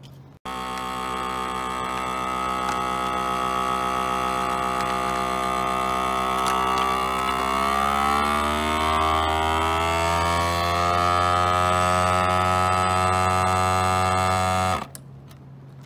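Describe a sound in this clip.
A vacuum sealer pump hums loudly and its pitch slowly rises, then stops abruptly.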